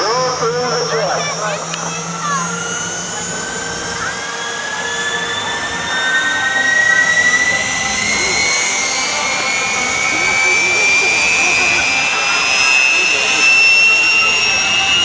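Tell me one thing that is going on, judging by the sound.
A jet engine whines loudly, its pitch slowly rising as it spools up.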